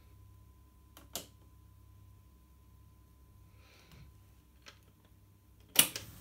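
A switch on a tape deck clicks sharply.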